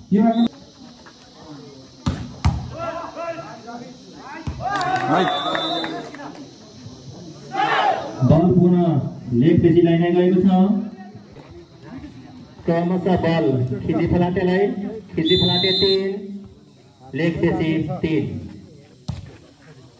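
Young men shout and call out to each other outdoors, close by.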